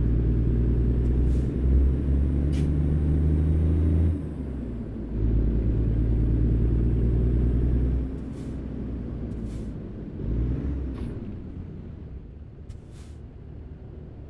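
A truck's diesel engine rumbles deeply, rising and falling as it accelerates and slows.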